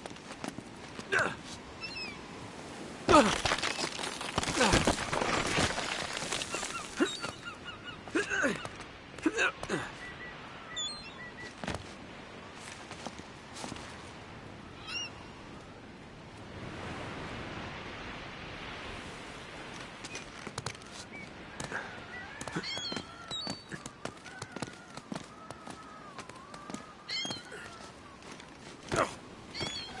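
Hands grab and scrape on stone ledges during a climb.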